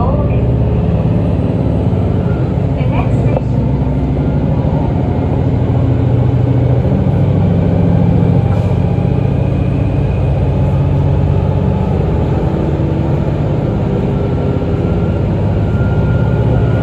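Train wheels screech faintly on the rails.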